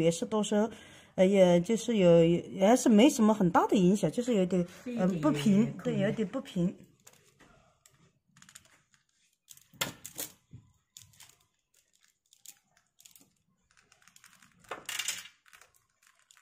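Beads clack softly against each other as they are handled.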